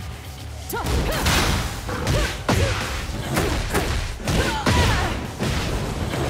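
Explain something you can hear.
A woman cries out with effort.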